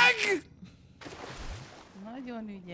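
Water splashes as a swimmer dives in.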